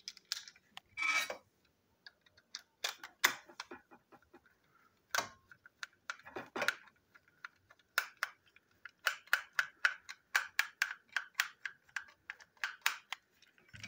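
A small screwdriver scrapes and clicks against plastic.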